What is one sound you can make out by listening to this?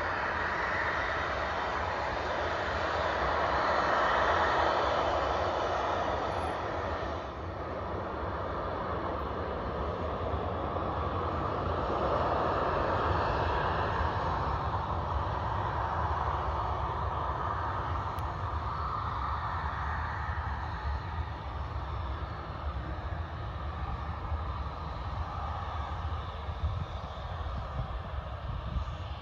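A jet airliner's engines roar steadily as it taxis at a distance.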